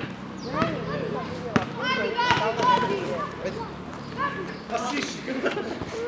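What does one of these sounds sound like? A basketball bounces on hard ground.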